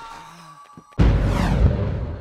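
A body lands hard on a stone floor with a heavy thud.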